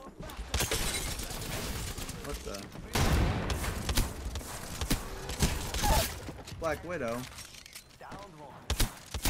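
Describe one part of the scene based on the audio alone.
Gunshots sound in a video game.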